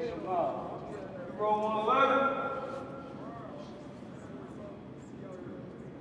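Footsteps echo in a large hard-floored hall.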